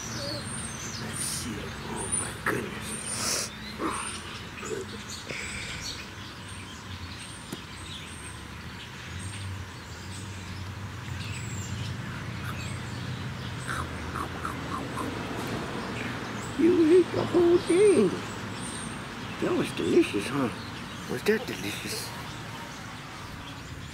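A middle-aged man talks softly and warmly, close by.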